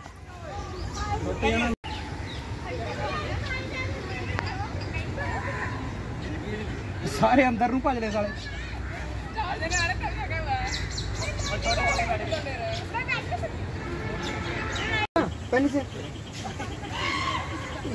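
Adults and children chatter and call out at a distance outdoors.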